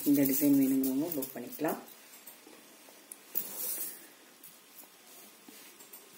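Gold chains clink softly as hands move them.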